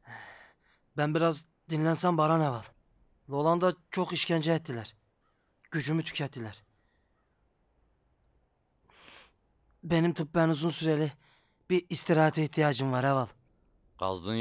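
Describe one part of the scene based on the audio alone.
A young man speaks in a strained, pained voice close by.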